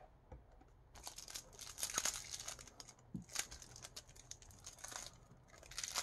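Plastic wrap crinkles between fingers.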